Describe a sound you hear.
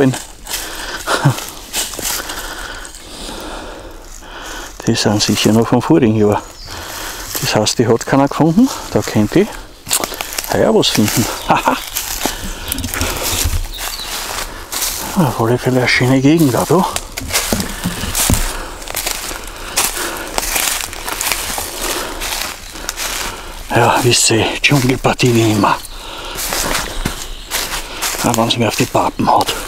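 Dry leaves rustle and crunch underfoot as someone walks.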